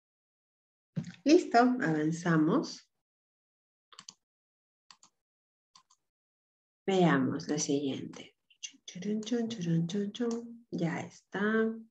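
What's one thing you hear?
A person speaks calmly over an online call.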